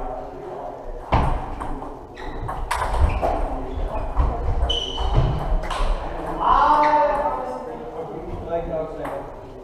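Men talk in the distance in a large echoing hall.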